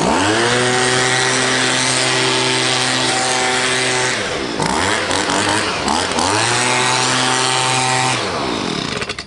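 A leaf blower engine roars loudly, revving up and down.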